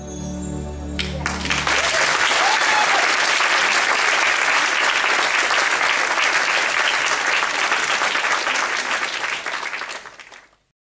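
An audience applauds loudly in a large hall, then fades out.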